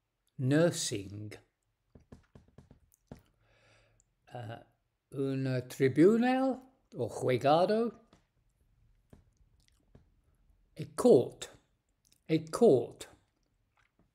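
An elderly man speaks calmly in short bursts with pauses, close to a microphone.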